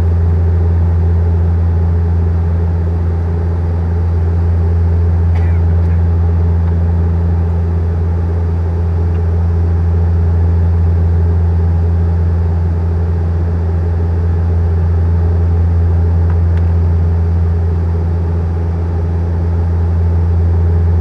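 An airplane's engines drone steadily from inside the cabin.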